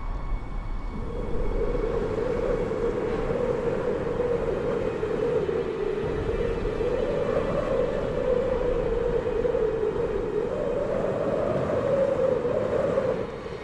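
Wind howls steadily, rising and falling in waves.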